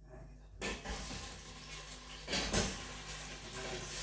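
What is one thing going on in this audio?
Meat drops into a pot with a soft thud.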